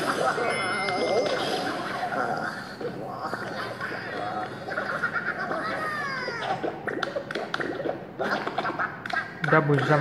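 Game sound effects chime and jingle.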